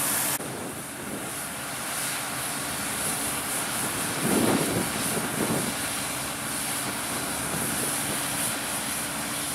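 A tractor engine idles with a steady low rumble.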